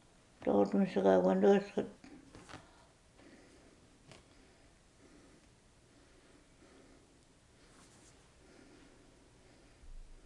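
An elderly woman speaks calmly nearby.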